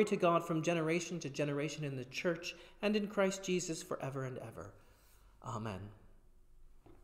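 A man reads out calmly into a microphone in an echoing room.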